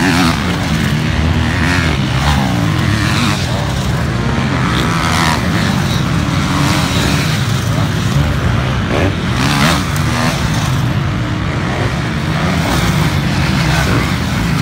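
Several dirt bike engines rev and whine loudly, rising and falling in pitch as the bikes race past.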